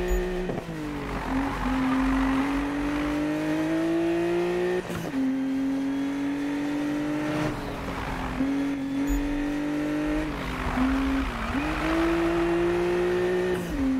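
Tyres screech as a car slides through bends.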